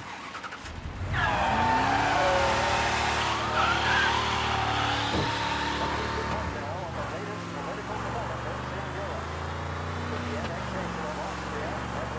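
A car engine starts and hums steadily as the car drives.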